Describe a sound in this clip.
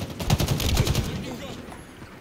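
Rapid gunfire rattles in a quick burst.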